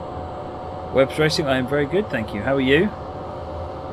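A middle-aged man speaks briefly and calmly into a microphone.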